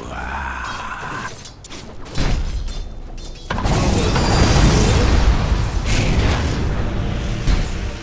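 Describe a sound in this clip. Fantasy battle sound effects clash and crackle loudly as magic spells burst.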